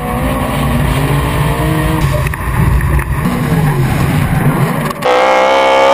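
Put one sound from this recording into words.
Tyres screech and squeal as a car slides sideways.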